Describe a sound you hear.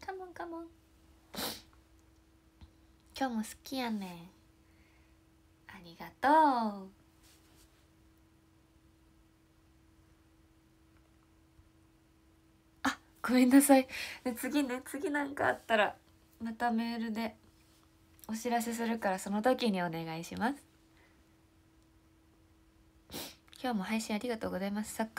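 A young woman talks with animation, close to a microphone, in bursts with pauses.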